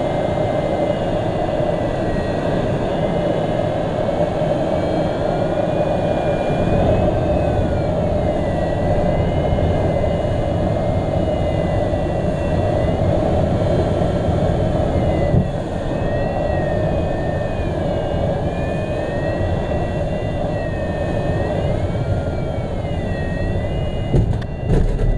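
Wind rushes loudly past a small aircraft in flight.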